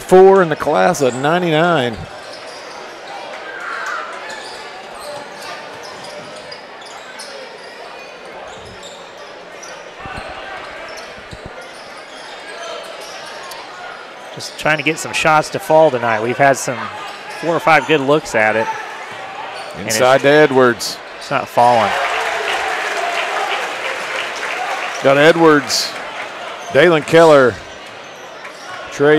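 Basketball shoes squeak on a wooden court.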